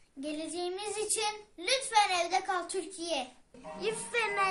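A young boy speaks cheerfully close to the microphone.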